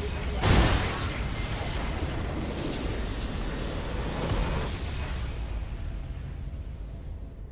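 A video game base structure explodes with a deep, booming blast that rumbles and fades.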